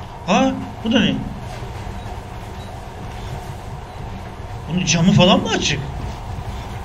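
A young man speaks in short bursts, close to a microphone.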